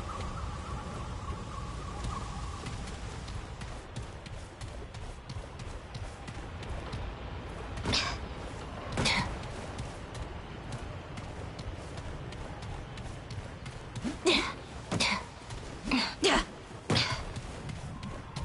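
Footsteps crunch on stone and gravel.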